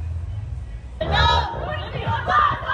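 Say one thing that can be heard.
A young woman shouts excitedly close by.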